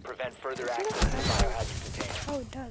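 A smoke grenade bursts open and hisses.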